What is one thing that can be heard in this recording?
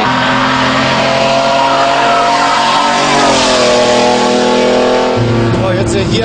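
A V12 engine in an SUV roars at speed, its pitch dropping as it corners.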